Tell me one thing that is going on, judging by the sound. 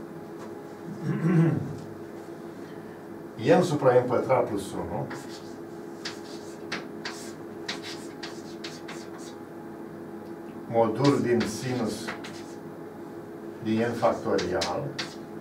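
An elderly man speaks calmly in short bursts in an echoing room.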